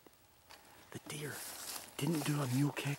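Leaves rustle underfoot as someone walks through the woods.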